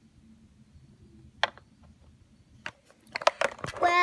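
Small plastic toys tap against a plastic playset.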